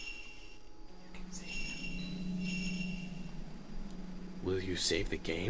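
A soft electronic hum plays steadily, then stops.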